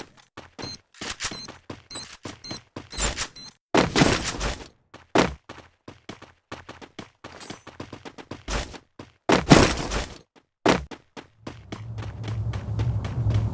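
Quick footsteps clatter across a metal roof.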